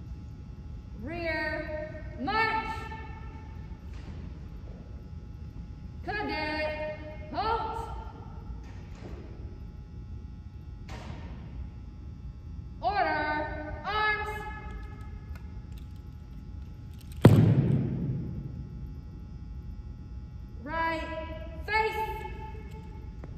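A young woman shouts short drill commands in a large echoing hall.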